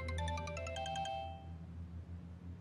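Phone keys beep quickly as a number is dialled.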